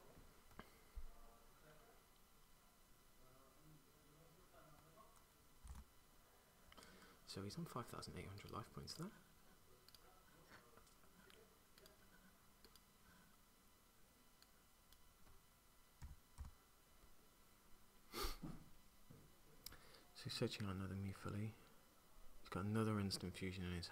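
Playing cards tap and slide on a mat.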